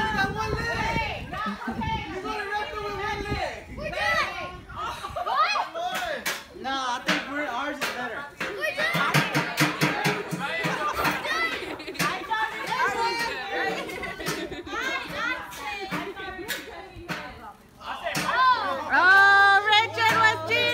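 A crowd of adults and children chatters, laughs and cheers outdoors.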